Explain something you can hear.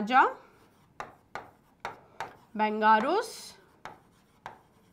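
A marker taps and squeaks against a writing board.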